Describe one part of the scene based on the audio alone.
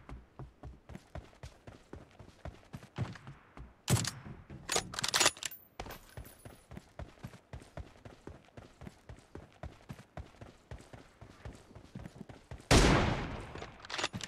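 Quick footsteps thud on the ground at a running pace.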